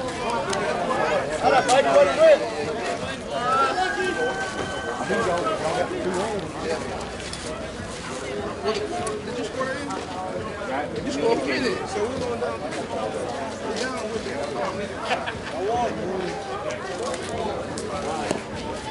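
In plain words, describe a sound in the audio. Several men and women chatter and call out outdoors at a distance.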